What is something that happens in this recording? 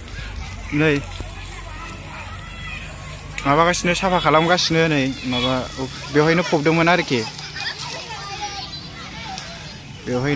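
Water sprays from a hose onto a hard floor.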